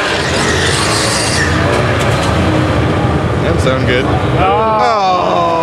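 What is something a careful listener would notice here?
Race car engines roar loudly nearby.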